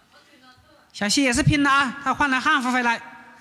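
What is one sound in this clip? A young woman sings a melody close to a microphone.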